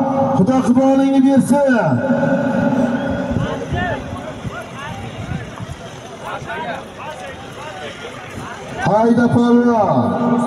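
A large crowd of men murmurs and calls out outdoors.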